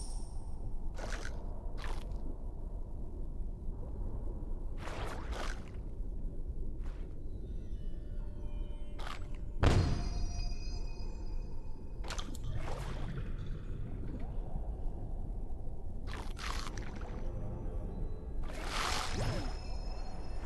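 A shark chomps on fish with sharp bites.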